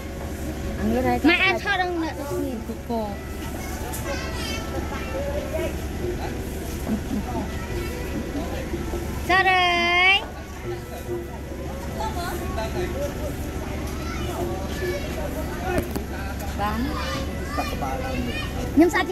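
A woman talks nearby.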